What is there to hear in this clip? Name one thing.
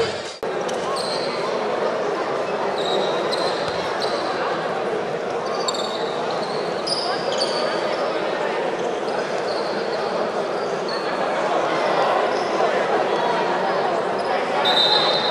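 A crowd murmurs and cheers steadily in a large echoing hall.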